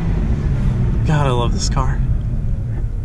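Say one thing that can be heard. A car engine revs sharply twice in quick bursts.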